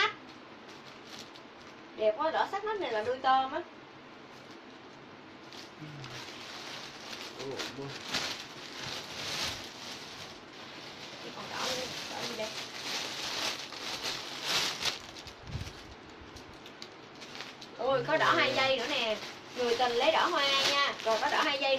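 Fabric rustles as a dress is shaken and handled.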